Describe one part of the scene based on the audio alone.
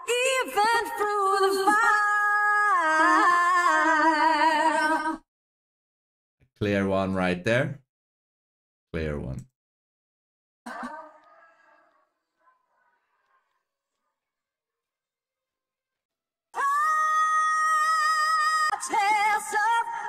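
A woman sings a sustained, wavering melody.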